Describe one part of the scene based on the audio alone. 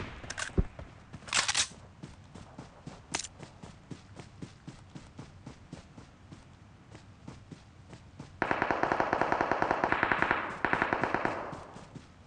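Footsteps patter across grass.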